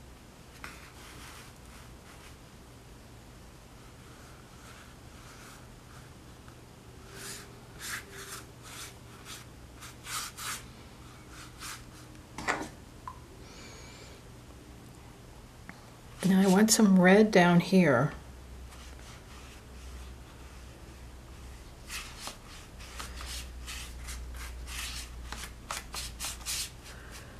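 A paintbrush swishes and scrapes across paper.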